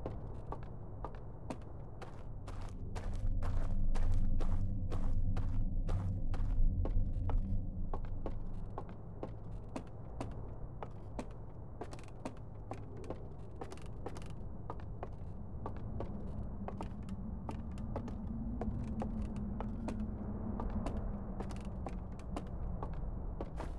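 Footsteps thud on hollow wooden boards at a steady walking pace.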